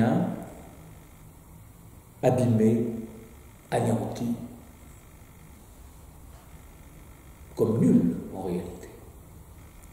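An elderly man speaks calmly and close by, in short phrases with pauses.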